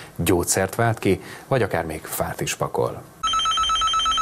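A man speaks calmly and clearly into a microphone, like a news presenter.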